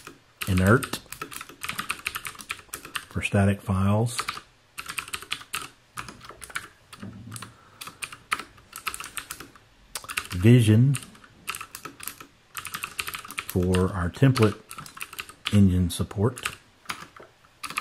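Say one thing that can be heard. Computer keys click rapidly in quick bursts.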